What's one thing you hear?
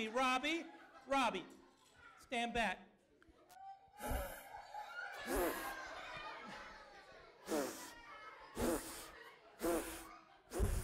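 Children in an audience shout and laugh.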